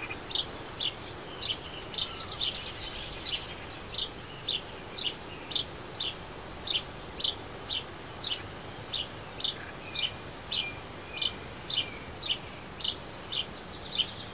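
A small bird chirps in quick, sharp, repeated calls close by.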